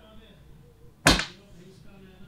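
A glass knocks against a table.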